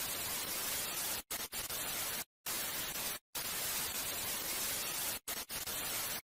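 Loud television static hisses, cutting out briefly a few times.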